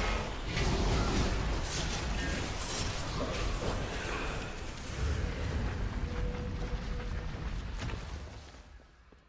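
Magic blasts and weapon strikes clash in a loud fight.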